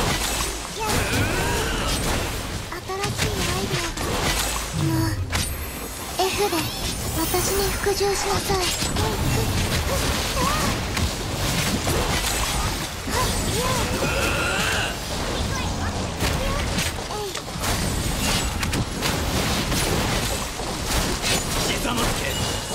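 Sword slashes and explosions crash rapidly in a fast fight.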